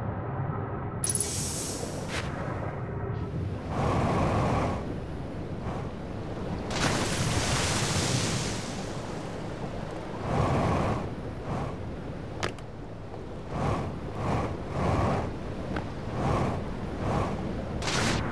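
Water murmurs and rumbles steadily all around, as if heard underwater.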